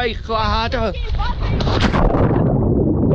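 A body splashes into water.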